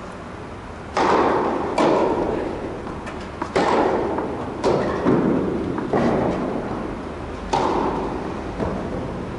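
A tennis ball is struck hard with a racket, echoing through a large hall.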